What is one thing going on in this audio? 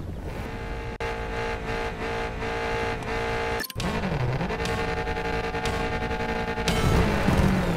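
A rally car engine idles and revs at the start line.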